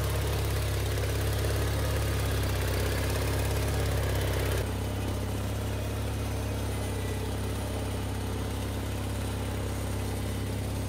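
A small tractor engine rumbles steadily close by.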